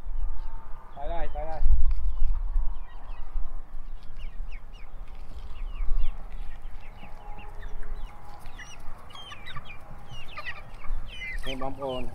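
Chickens cluck and squawk close by.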